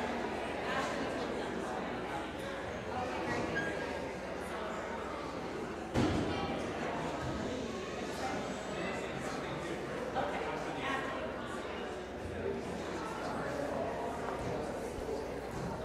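Many people chatter quietly in a large echoing hall.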